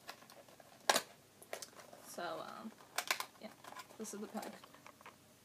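Paper crinkles and rustles in a young woman's hands.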